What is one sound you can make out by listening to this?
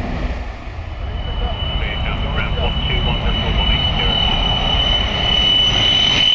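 A jet engine whines with a steady high tone that grows stronger.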